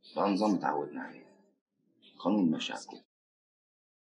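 A man speaks calmly and quietly up close.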